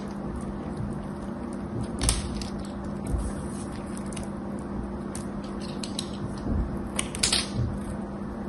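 Soap flakes crumble and patter onto a pile of shavings.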